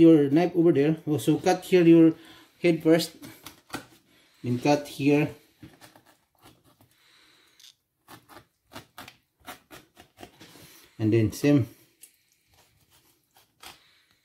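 A knife slices through raw fish on a cutting board.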